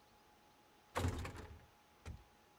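A game menu snaps shut with a short rustle.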